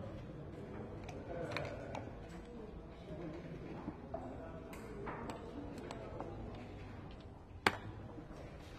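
Dice rattle in a cup and clatter onto a wooden board.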